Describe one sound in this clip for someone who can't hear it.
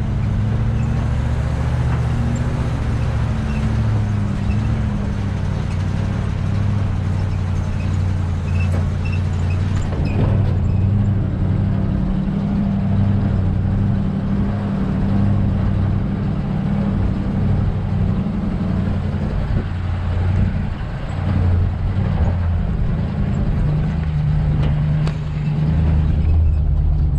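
A vehicle engine rumbles steadily as it drives slowly along a dirt track.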